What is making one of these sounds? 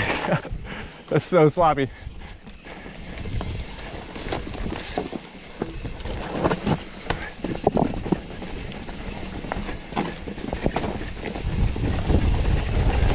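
A bicycle rattles and clunks over bumps.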